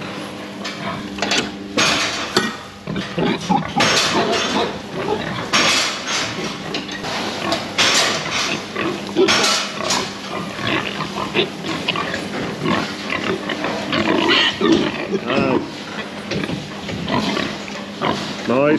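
Pigs grunt and squeal nearby.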